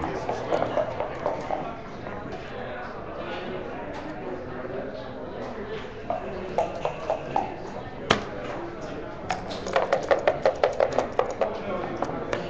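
Dice rattle in a cup.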